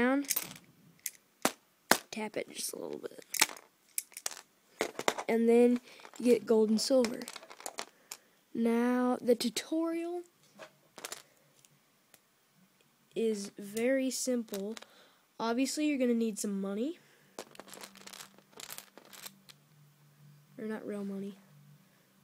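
Plastic toy bricks click and tap against a plastic board.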